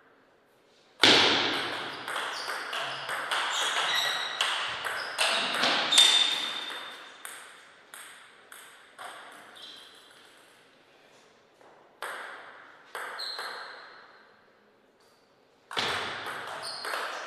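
A table tennis ball clicks sharply back and forth off paddles and the table in an echoing hall.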